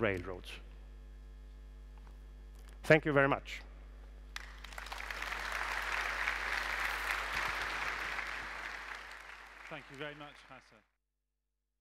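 A middle-aged man speaks through a microphone in a large hall.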